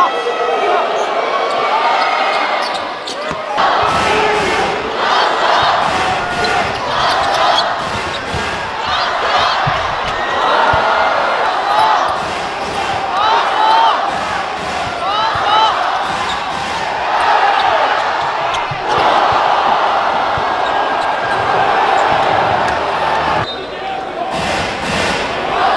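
A large crowd cheers and roars in a big echoing arena.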